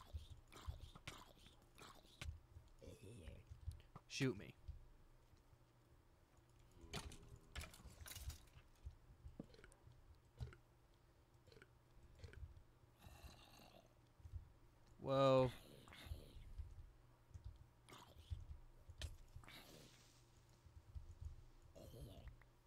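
A zombie groans loudly.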